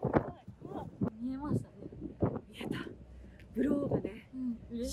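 Another young woman talks excitedly close by.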